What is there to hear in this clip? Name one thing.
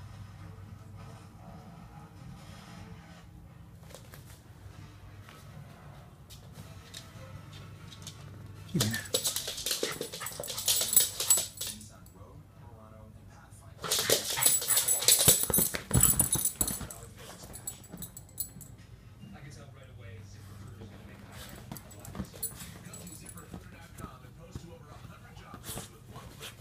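A small dog scuffles and paws at a soft toy.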